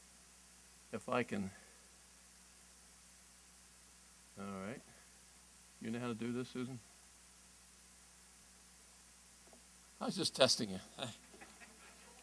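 An elderly man speaks in short bursts through a microphone in a large hall.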